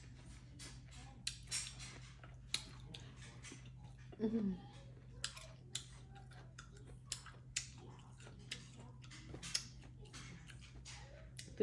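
Food crunches and rustles as a hand picks it from a bowl.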